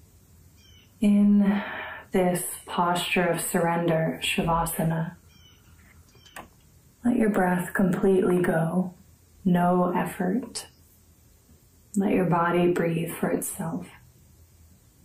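A young woman speaks calmly and softly, close to the microphone.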